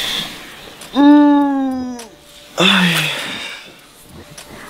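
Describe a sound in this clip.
A young man groans loudly as he stretches and yawns.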